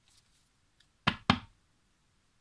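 A card slides and taps onto a table.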